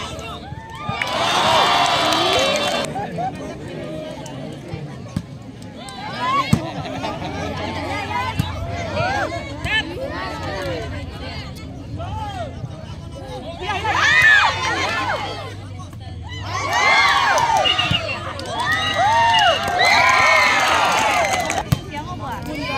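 A large outdoor crowd cheers and shouts in bursts.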